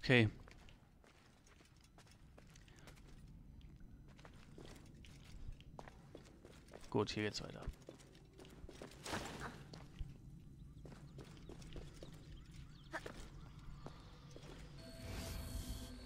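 Footsteps run over stony ground.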